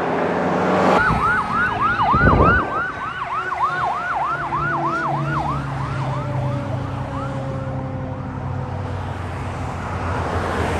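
A fire truck siren wails in fast rising and falling sweeps, then fades into the distance.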